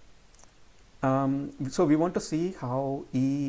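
A man speaks calmly into a close microphone, as if lecturing.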